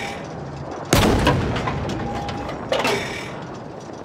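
A large explosion booms and rumbles away.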